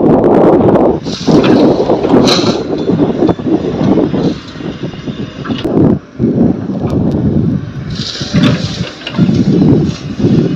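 Sand pours with a rushing hiss into a truck's metal bed.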